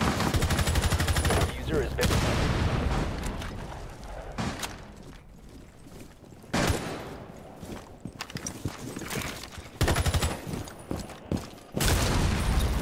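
Gunfire from a video game crackles in quick bursts.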